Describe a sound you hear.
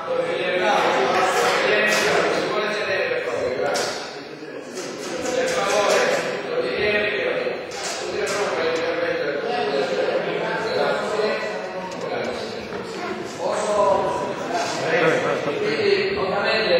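An elderly man speaks loudly and with animation in a large echoing hall.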